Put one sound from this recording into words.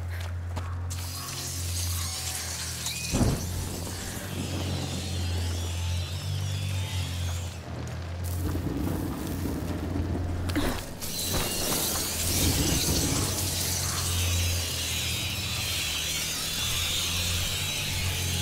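A torch flame crackles and hisses.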